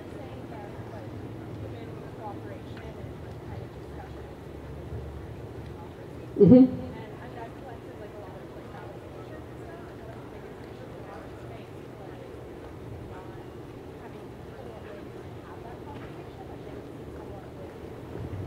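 A woman speaks calmly through a microphone outdoors.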